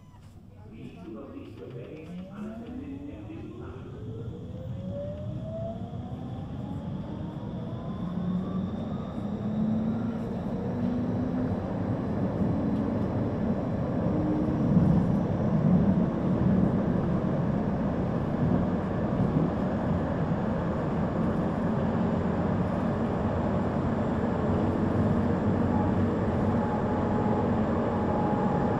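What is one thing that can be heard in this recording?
A tram rumbles and rattles along the rails.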